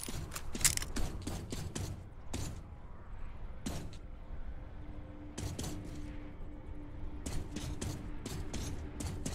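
Footsteps clank on a sheet metal roof.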